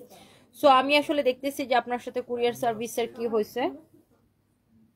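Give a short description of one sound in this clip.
A young woman speaks close to a phone's microphone with animation.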